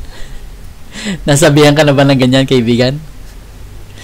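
A man speaks with animation into a headset microphone.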